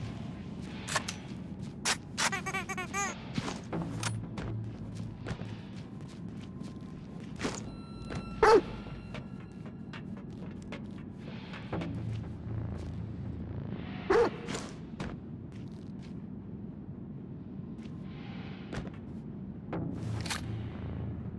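Footsteps clang on metal stairs and walkways.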